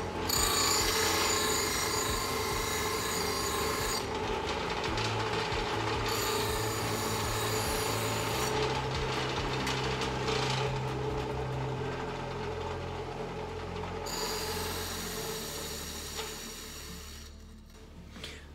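A bench grinder whirs and grinds against metal.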